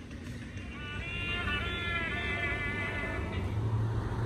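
A toy skeleton plays a short, tinny saxophone tune through a small speaker.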